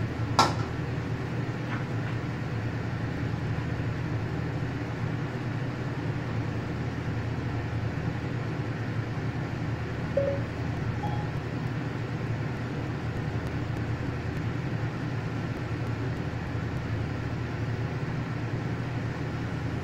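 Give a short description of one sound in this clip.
A gas burner roars low and steady.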